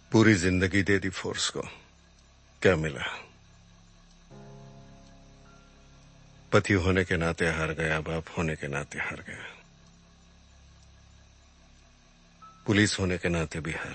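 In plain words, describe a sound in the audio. A middle-aged man speaks tensely, close by.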